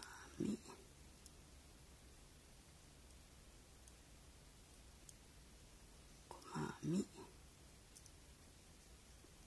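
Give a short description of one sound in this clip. Small beads click softly against a crochet hook.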